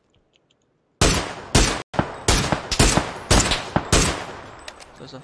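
Rapid gunshots crack in a game.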